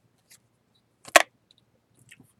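A playing card slides and taps down onto a stack.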